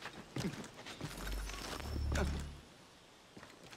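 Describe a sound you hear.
A low whoosh swells and fades as a climber leaps between branches.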